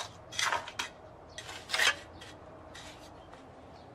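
A trowel scrapes wet mortar.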